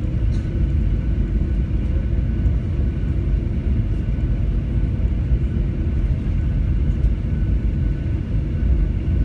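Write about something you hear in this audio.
An aircraft engine rumbles steadily as a plane taxis, heard from inside the cabin.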